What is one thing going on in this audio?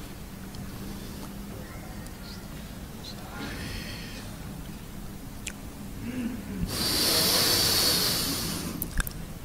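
A young man recites in a long, drawn-out chant through a microphone.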